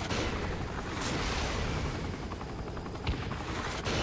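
A rocket whooshes away from a helicopter.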